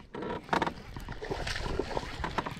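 A fish splashes at the water's surface nearby.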